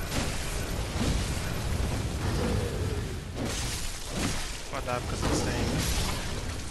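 Weapons slash and strike in a fight, with heavy impacts.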